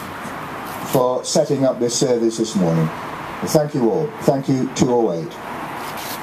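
An elderly man reads out slowly through a microphone and loudspeaker outdoors.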